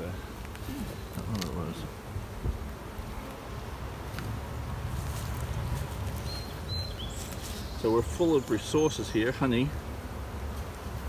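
Bees buzz in a low, steady hum.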